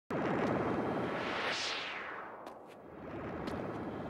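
A futuristic car whooshes past and fades away.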